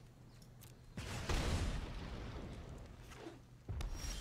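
A fiery blast whooshes and crackles.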